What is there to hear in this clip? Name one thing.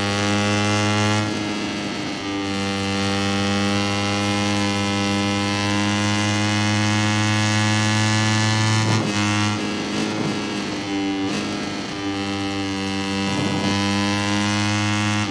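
A motorcycle engine roars at high revs, dropping briefly as it shifts gears.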